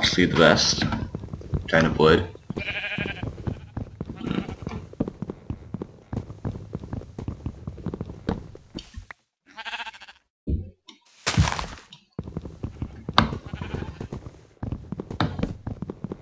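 Dull wooden knocks repeat quickly as a block is punched.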